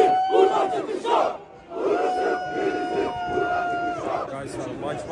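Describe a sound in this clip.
A crowd chants loudly in a large stadium.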